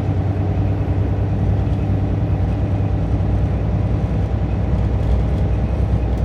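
Tyres roll steadily on asphalt.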